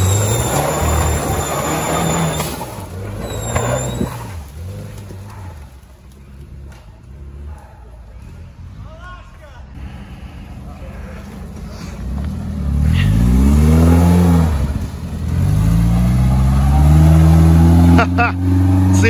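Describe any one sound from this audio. An off-road vehicle's engine revs hard close by, rising and falling.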